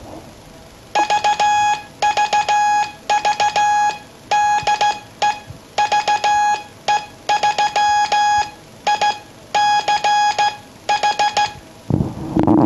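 A practice oscillator beeps in short and long Morse code tones.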